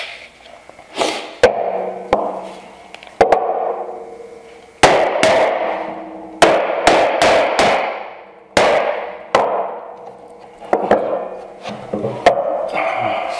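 A mallet strikes a metal holdfast with sharp, ringing knocks.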